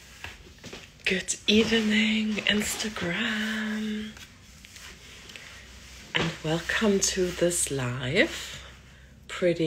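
A woman speaks close up, in a warm, chatty voice.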